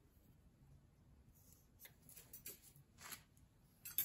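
A pencil scratches on cardboard.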